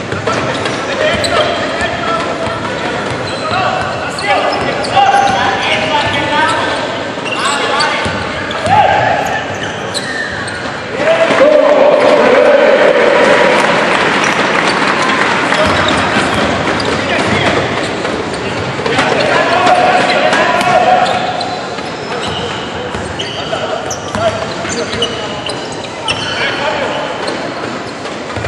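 A basketball thuds as it bounces on a wooden floor.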